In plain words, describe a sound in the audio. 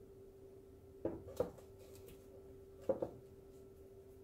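A wooden board knocks down onto a table twice.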